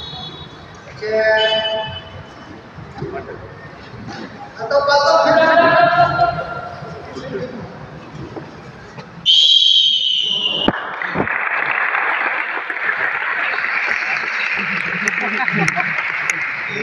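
Children in a crowd shout and cheer loudly.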